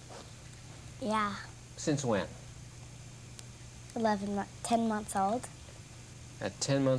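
A young girl speaks cheerfully through a microphone.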